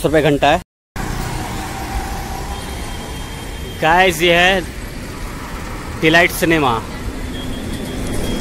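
Auto-rickshaws and traffic rumble past on a street.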